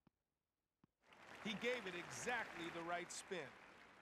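A crowd cheers and applauds loudly.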